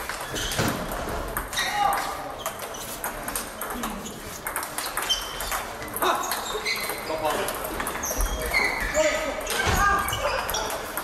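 Table tennis balls click sharply against paddles and tables, over and over.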